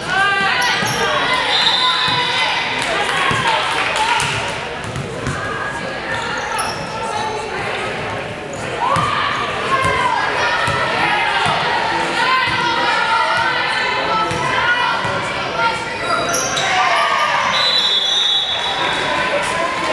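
Young women call out to each other across the court.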